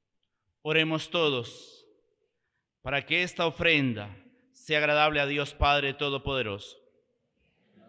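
A middle-aged man sings a chant through a microphone, in an echoing hall.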